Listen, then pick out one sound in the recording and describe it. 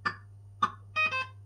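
A slot machine plays a short electronic jingle.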